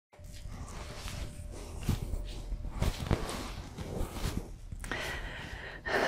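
Clothing rustles as a woman moves and sits down.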